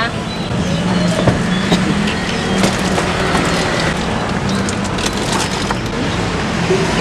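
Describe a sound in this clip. A plastic cooler lid knocks and thumps as it is opened.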